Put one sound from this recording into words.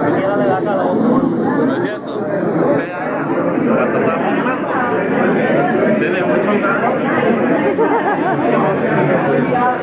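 A middle-aged man talks cheerfully, close by.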